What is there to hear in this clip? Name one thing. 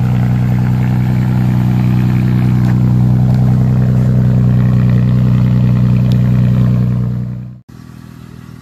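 A muffler-deleted V6 SUV exhaust idles with a deep rumble.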